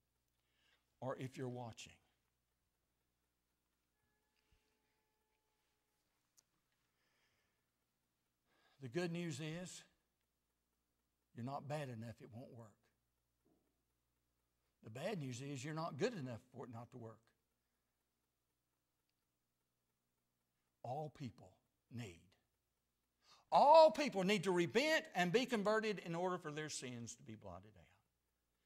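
An elderly man speaks slowly into a microphone, with long pauses, then speaks louder with emphasis.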